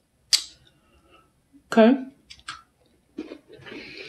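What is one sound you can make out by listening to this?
A young woman chews food.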